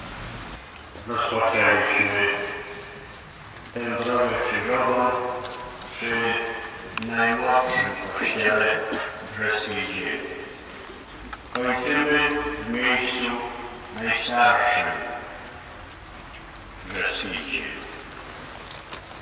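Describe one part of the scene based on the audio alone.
An elderly man speaks steadily through a microphone, with pauses.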